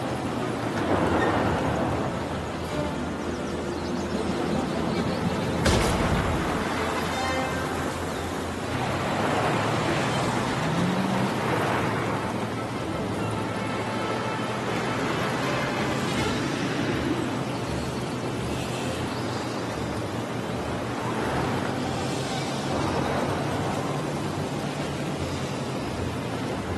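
A small engine hums steadily as a racing car speeds along.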